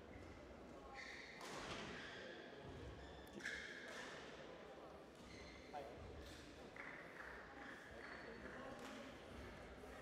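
Sports shoes squeak sharply on a hall floor.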